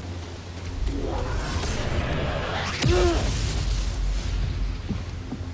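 An explosion bursts with a roar.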